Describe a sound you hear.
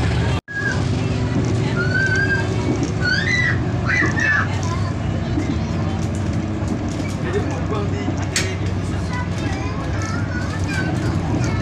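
The diesel engine of a railcar drones low, heard from inside the passenger cabin.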